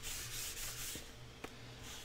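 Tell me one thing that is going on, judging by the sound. Paper rustles as hands handle it.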